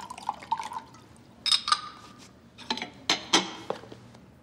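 Glass clinks against glass.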